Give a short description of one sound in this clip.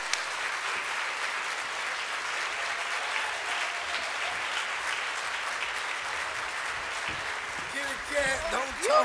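An audience applauds and cheers in a large room.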